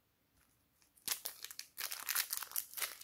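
Small foam beads rustle softly in a container.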